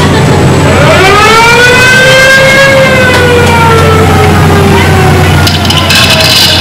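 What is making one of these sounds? Ride car wheels whine, rising and then slowly falling in pitch.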